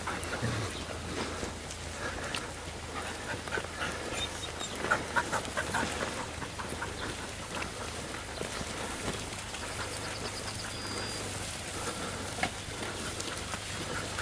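Hooves of a herd of cows squelch and thud on muddy ground.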